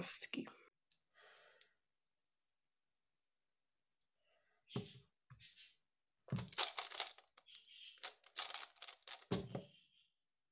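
A plastic puzzle cube clicks and rattles as it is turned quickly.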